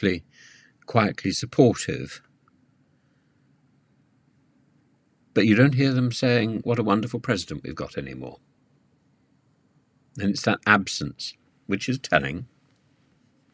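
An elderly man speaks calmly and thoughtfully, close to a microphone, with long pauses.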